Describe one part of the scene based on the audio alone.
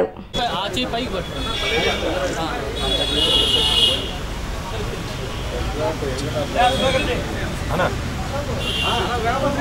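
Several men talk and call out over one another close by.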